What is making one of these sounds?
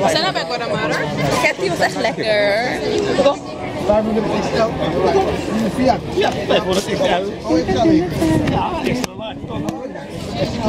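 A crowd chatters in the background outdoors.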